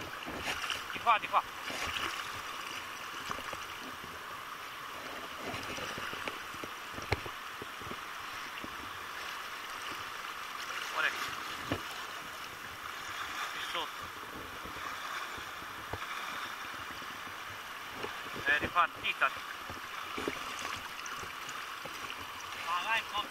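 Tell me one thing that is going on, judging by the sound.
A river rushes and gurgles close by.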